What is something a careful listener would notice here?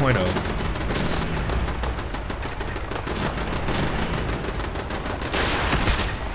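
Laser rifles fire in rapid bursts.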